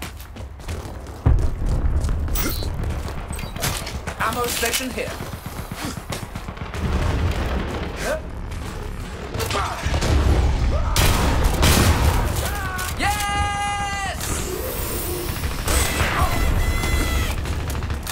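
Gunshots crackle in quick bursts.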